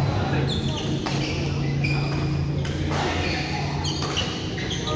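Badminton rackets strike a shuttlecock in a large echoing hall.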